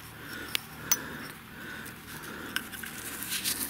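A glass jar clinks and knocks as it is picked up and handled.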